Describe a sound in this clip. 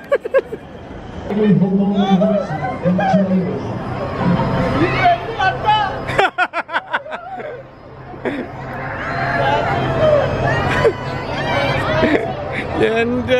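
Riders scream on a spinning fairground ride.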